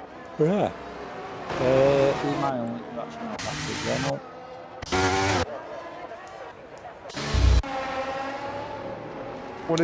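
A racing car engine whines loudly and revs up and down.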